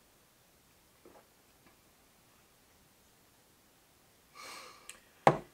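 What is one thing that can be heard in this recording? A glass clinks against a wooden counter.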